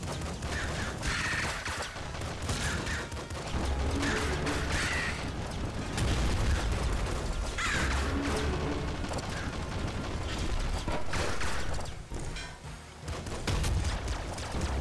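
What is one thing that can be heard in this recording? Rapid video game gunshots fire and crackle.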